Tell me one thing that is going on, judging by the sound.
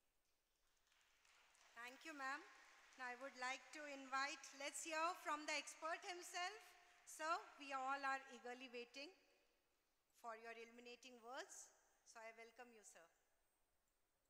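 A young woman speaks with animation through a microphone and loudspeakers.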